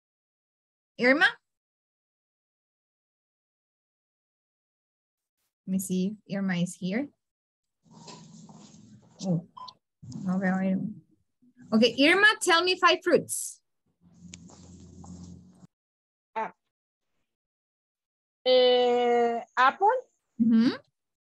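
A young woman speaks through an online call, in short bursts.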